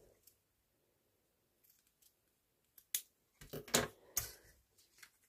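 Scissors snip through tape.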